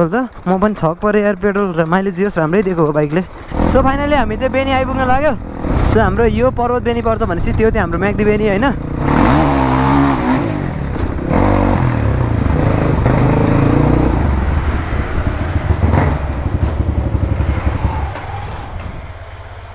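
A dirt bike engine revs up and down close by, then settles to a low rumble.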